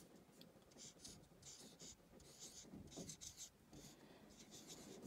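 A marker squeaks across a whiteboard in short strokes, close by.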